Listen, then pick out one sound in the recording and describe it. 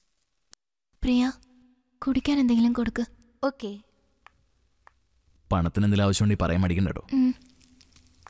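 A man speaks softly, close by.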